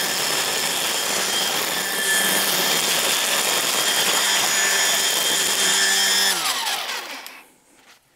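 A string trimmer whirs steadily, cutting through weeds.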